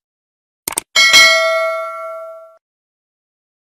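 A small bell chimes and rings out.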